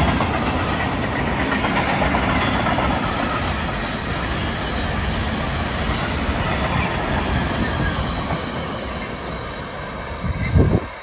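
A long freight train rumbles past, its wheels clattering over the rail joints.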